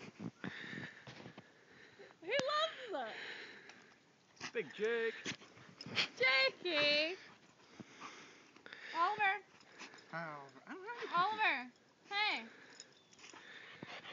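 Snow crunches and shuffles as dogs bound through it.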